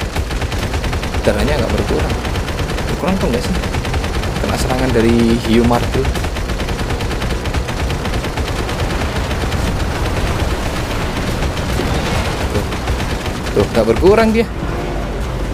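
A mounted machine gun fires in rapid bursts.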